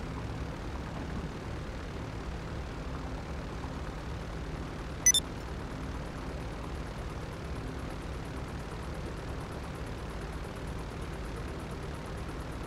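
A propeller plane's engine idles with a steady low drone.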